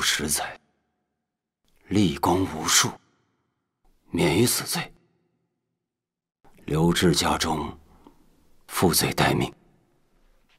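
A man speaks firmly and slowly, with pauses.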